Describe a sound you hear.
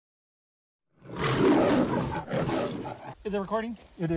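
A cat growls loudly.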